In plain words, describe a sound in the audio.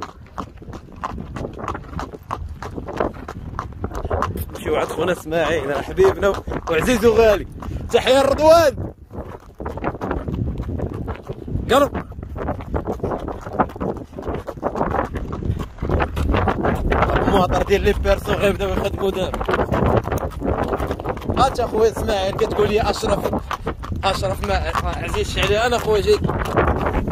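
A horse's hooves clop steadily on a paved road.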